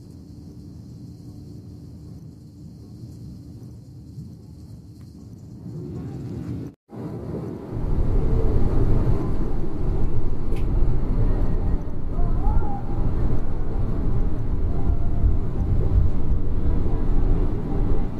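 A vehicle's engine rumbles low and steady as it drives along a road, growing louder partway through.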